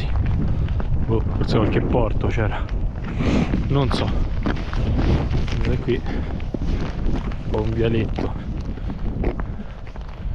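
Wind blows and rumbles outdoors.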